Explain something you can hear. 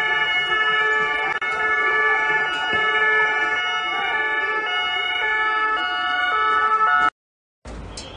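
A police siren wails nearby outdoors.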